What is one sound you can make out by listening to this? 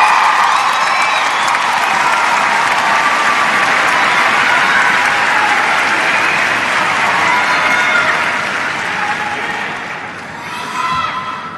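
A large crowd cheers and applauds in a big echoing arena, then quiets down.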